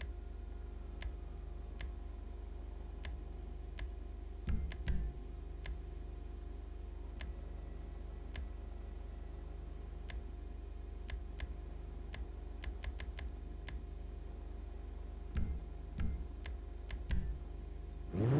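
Menu selections click softly, one after another.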